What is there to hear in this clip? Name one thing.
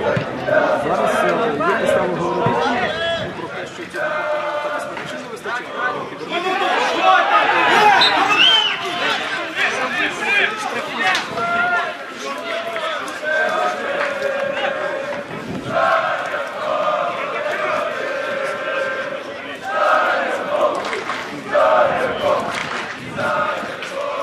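Men shout and call out to each other outdoors on a playing field.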